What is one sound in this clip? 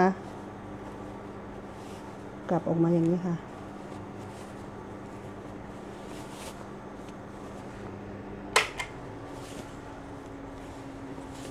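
Satin fabric rustles softly as hands fold and turn it.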